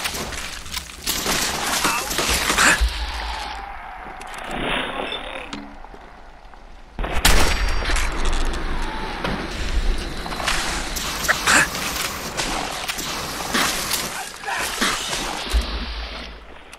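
Explosions burst and crackle with fire.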